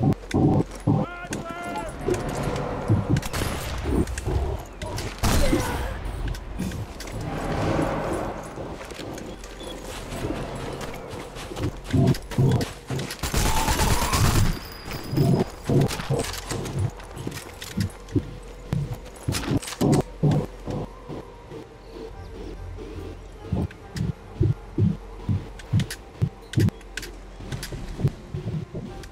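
Heavy footsteps thud quickly on hard ground.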